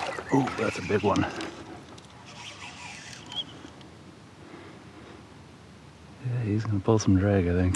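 A fishing reel clicks and whirs as line is wound in.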